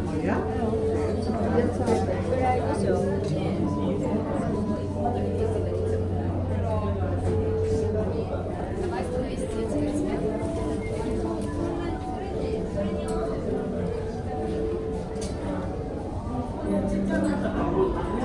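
A crowd of people chatters quietly in a large echoing space.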